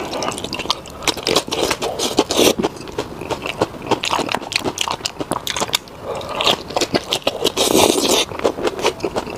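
Crisp lettuce crunches as a man bites into it.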